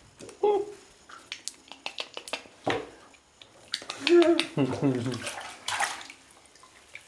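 A toddler babbles and squeals close by.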